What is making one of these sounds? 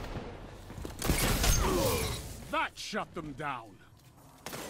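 Gunfire and explosions crack and boom in quick bursts.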